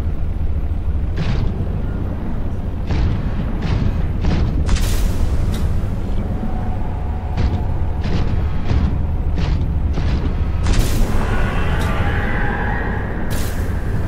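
A submarine engine hums low and steady underwater.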